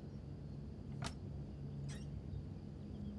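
A wooden wardrobe door clicks and swings open.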